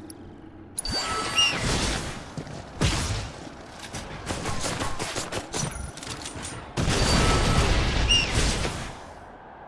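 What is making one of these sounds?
Weapons clash and strike repeatedly in a fast fight.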